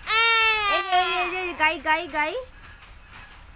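A toddler wails loudly close by.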